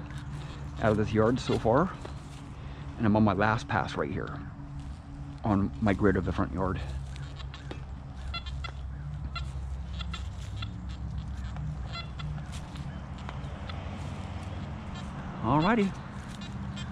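A metal detector gives short warbling beeps.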